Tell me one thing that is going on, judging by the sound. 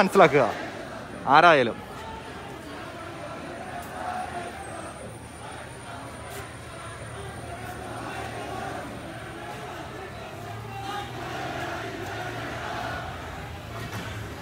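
A large crowd murmurs and calls out outdoors at a distance.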